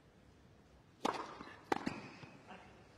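A tennis ball is served with a sharp pop and returned.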